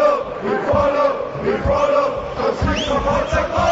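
A large crowd chants and sings loudly together.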